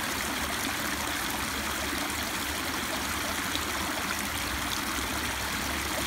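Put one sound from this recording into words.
Water splashes and gurgles steadily as it pours over a small ledge close by.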